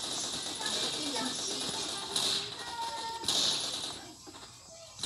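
A machine gun fires in bursts.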